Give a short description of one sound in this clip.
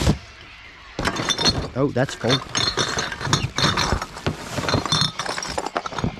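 Plastic and cardboard rustle and crinkle.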